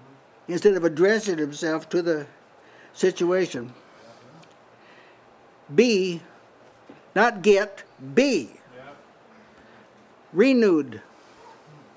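An elderly man speaks with animation in short bursts through a microphone.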